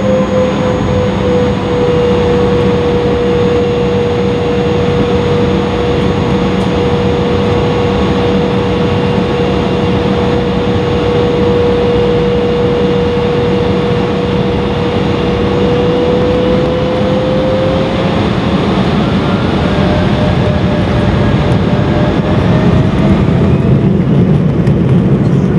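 Airliner wheels rumble along a runway.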